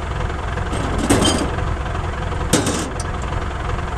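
A baler knocks and clanks.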